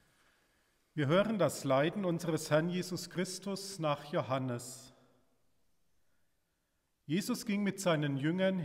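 A man speaks calmly and steadily through a microphone.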